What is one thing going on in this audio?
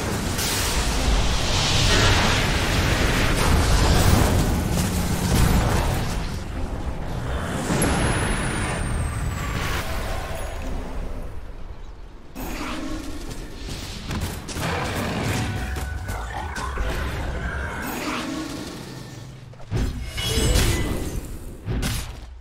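Magic spells crackle and boom in a video game battle.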